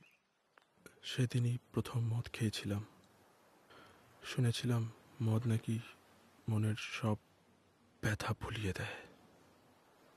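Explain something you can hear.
A man speaks calmly and slowly, close by, in short phrases.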